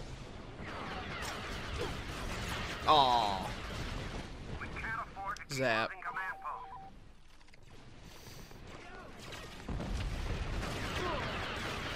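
Blaster shots fire in quick bursts.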